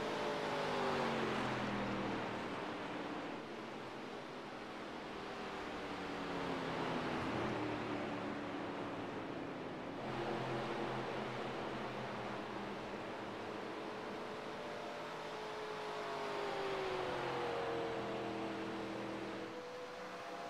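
Race car engines roar at high speed, rising and falling in pitch as they pass.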